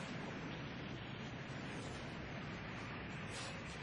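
Masonry collapses with a deep, rumbling roar.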